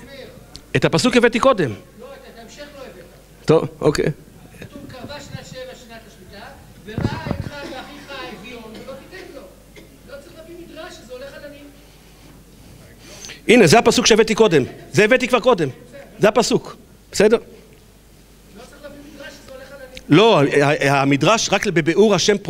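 An elderly man speaks with animation into a microphone, heard through a loudspeaker in a large room.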